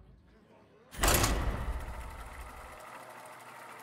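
A game menu sound whooshes loudly as a search begins.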